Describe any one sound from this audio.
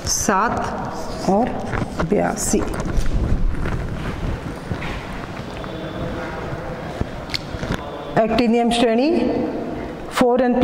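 A woman speaks clearly to a class nearby.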